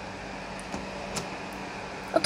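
A door handle clicks as it turns.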